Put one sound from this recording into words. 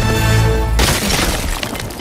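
A small explosion bursts with a loud, deep boom.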